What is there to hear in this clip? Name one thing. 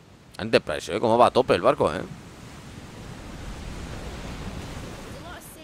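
Waves crash and churn on a stormy sea.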